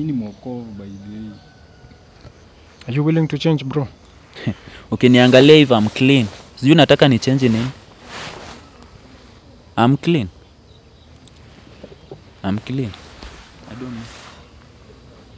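A young man speaks nearby in short, lively bursts.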